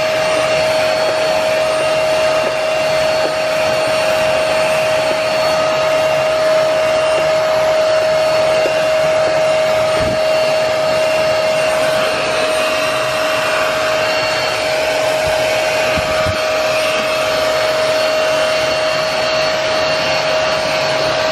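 A carpet cleaner's nozzle sucks water from the carpet with a hissing slurp.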